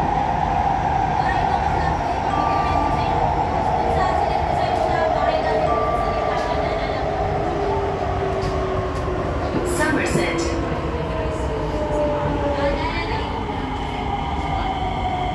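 A train rumbles and hums steadily as it rolls along the tracks.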